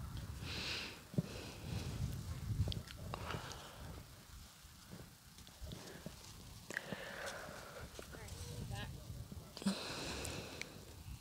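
A woman speaks calmly to a horse nearby.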